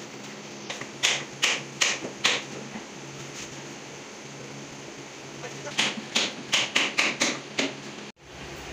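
Wooden shelves knock and bump against a wall.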